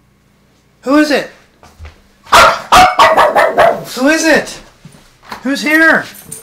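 A small dog barks and yelps.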